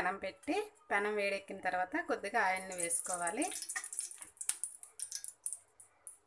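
Beaten egg sizzles as it is poured onto a hot pan.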